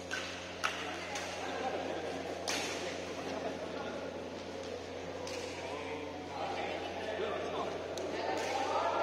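Shuttlecocks are struck sharply with rackets in a large echoing hall.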